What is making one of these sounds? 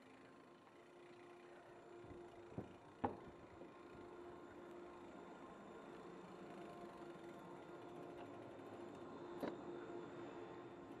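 Chairlift machinery hums and rumbles steadily nearby.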